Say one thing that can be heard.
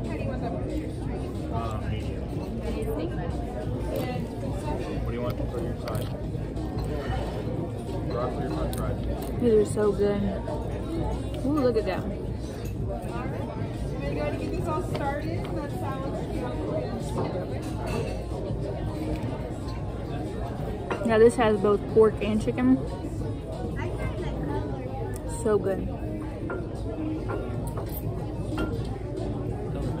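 A woman chews food with her mouth close to the microphone.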